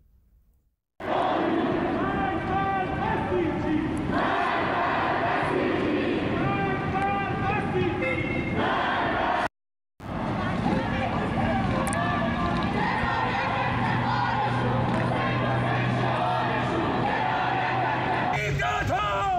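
A large crowd chants loudly in rhythm.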